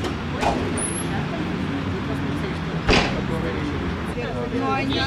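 A woman speaks calmly outdoors.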